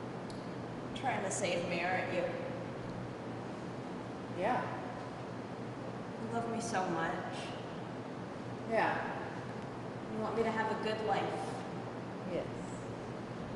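A young woman speaks softly and emotionally, close by.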